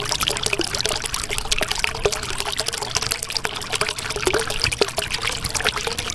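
Air bubbles gurgle and pop steadily underwater.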